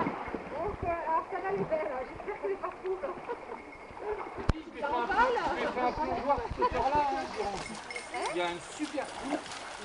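A dog paddles and sloshes through water.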